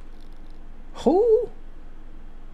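A young man lets out a short, sharp exclamation close to a microphone.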